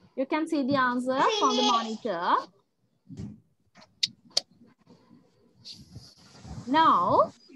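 A child speaks with animation over an online call.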